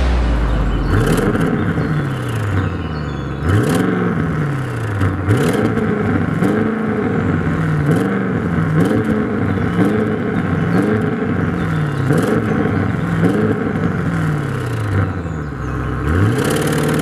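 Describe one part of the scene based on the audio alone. A car engine revs up and down repeatedly, bouncing off its rev limiter.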